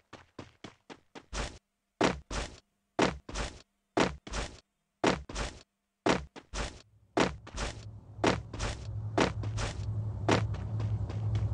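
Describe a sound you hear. Footsteps pound quickly on the ground.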